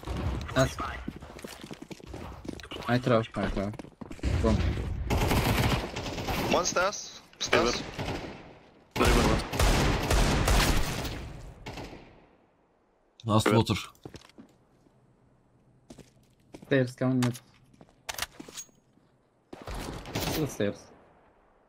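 A young man talks into a headset microphone with animation.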